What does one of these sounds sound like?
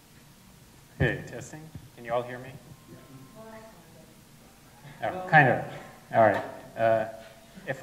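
A man speaks through a microphone with short pauses.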